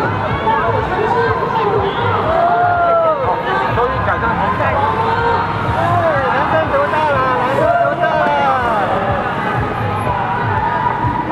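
A man speaks loudly through a loudspeaker outdoors.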